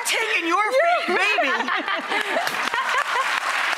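Young women laugh loudly.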